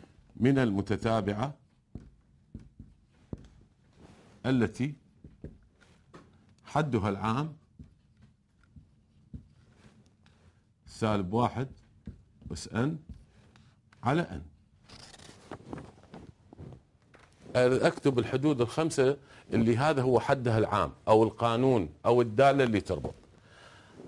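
An elderly man speaks calmly into a close microphone, in short bursts with pauses.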